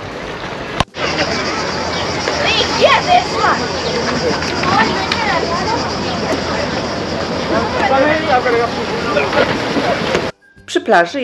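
People chatter and call out in the distance outdoors.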